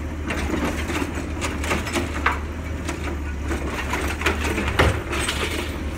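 Trash clatters and thuds as it falls into a garbage truck.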